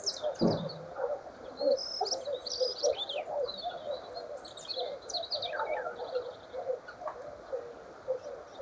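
A small bird sings close by with a busy mix of chirps, whistles and clicks.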